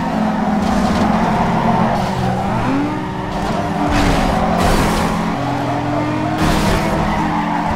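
Tyres screech as a car slides through a turn.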